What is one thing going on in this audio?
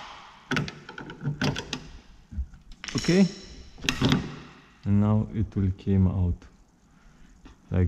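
A plastic car door handle clicks and snaps as it is pried loose.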